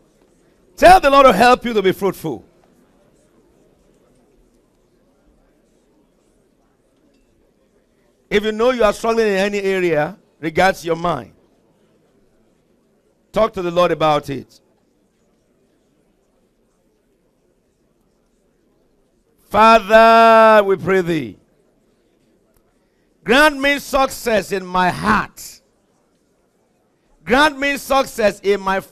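A man speaks with feeling through a microphone in a large hall, in phrases with pauses between them.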